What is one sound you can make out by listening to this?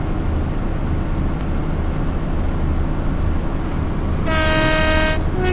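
A train engine rumbles steadily as wheels roll along the track.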